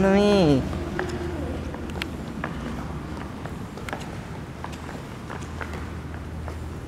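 Footsteps tap on a tiled floor in a large room.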